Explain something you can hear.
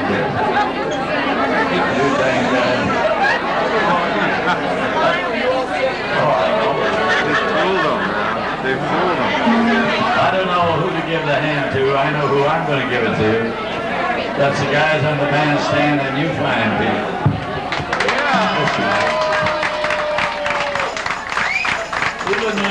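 A crowd of people chatters loudly in a busy room.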